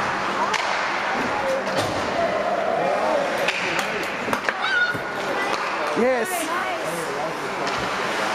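Hockey sticks clack on the puck and ice.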